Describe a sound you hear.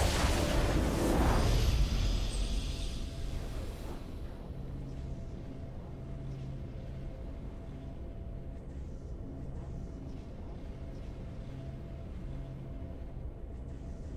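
A triumphant game fanfare swells and fades.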